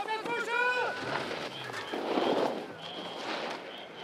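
Snowboards scrape and hiss across hard snow.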